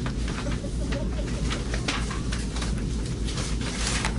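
Paper sheets rustle softly in a man's hands.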